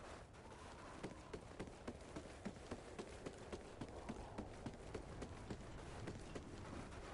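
Quick footsteps thud on hard ground.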